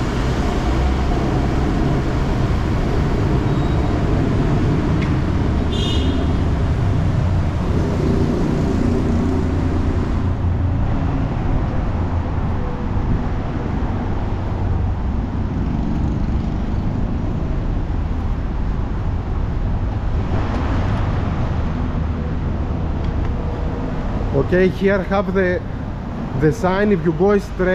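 Traffic rumbles steadily from a road below.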